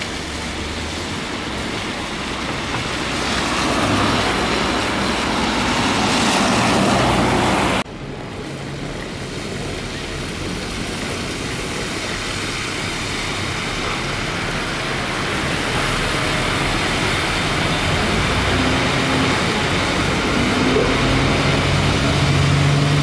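A bus engine rumbles and idles nearby.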